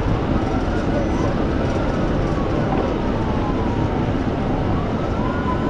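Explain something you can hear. A police siren wails up and down continuously.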